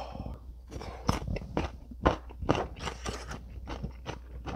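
Chopsticks clatter and scrape against a metal pan.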